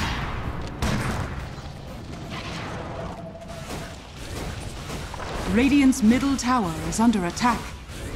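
Fantasy battle sound effects clash and crackle.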